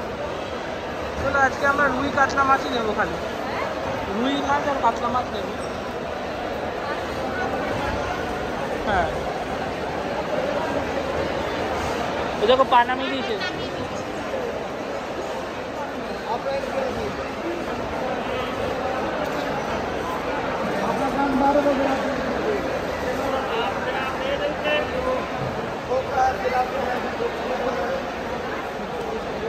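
A crowd of people chatter in a large, echoing hall.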